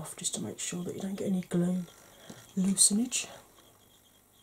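A woman talks calmly and close to a microphone.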